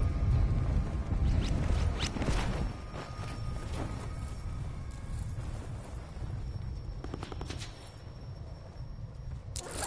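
Wind rushes loudly as a figure falls through the air.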